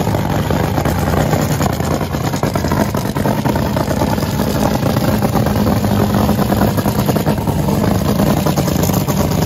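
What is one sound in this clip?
A dragster's engine idles with a loud, rough, crackling rumble nearby, outdoors.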